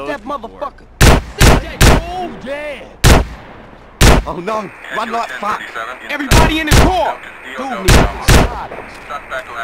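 Loud gunshots ring out one after another.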